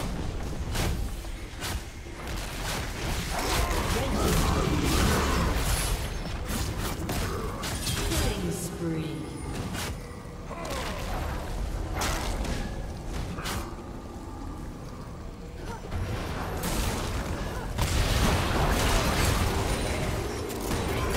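Spells burst and attacks clash in a busy video game battle.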